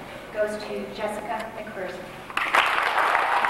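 A woman speaks into a microphone over a loudspeaker, in an echoing hall.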